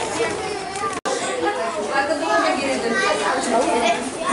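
A young girl sings along with other children.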